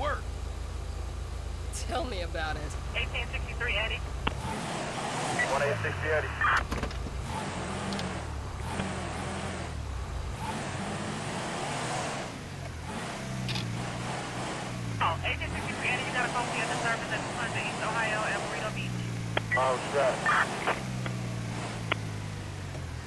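A car engine idles, then revs up and down as the car drives off.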